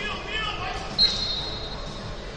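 A whistle blows once, short and sharp.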